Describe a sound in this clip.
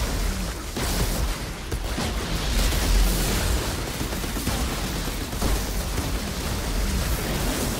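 Energy blasts crackle and boom loudly.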